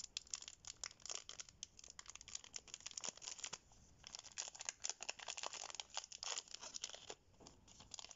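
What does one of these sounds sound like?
A foil wrapper crinkles and rustles in gloved hands.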